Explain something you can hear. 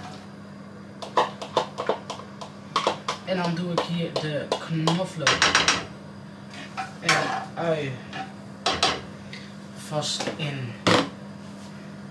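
Kitchen utensils clatter and knock against a pan.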